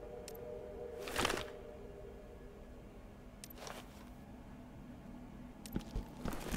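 A rifle rattles as it is raised and handled.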